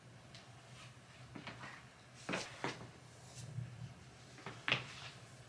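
Fabric rustles as a knit hat is pulled on close by.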